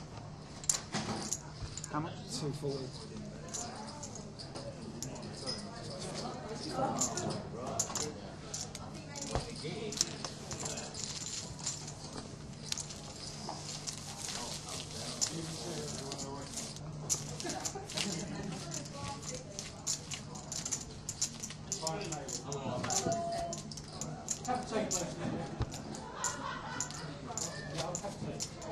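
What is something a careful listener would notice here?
Men talk in low voices nearby.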